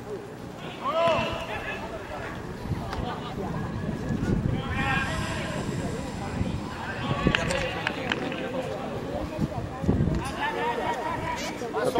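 Men shout to one another across an open pitch outdoors.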